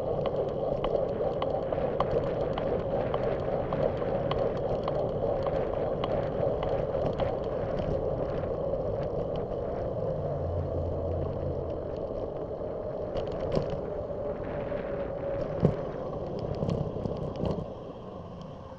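Wind rushes and buffets loudly against the microphone.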